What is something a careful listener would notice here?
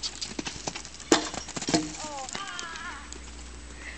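A wooden pole clatters to the ground.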